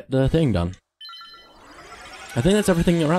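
A bright magical chime rings out.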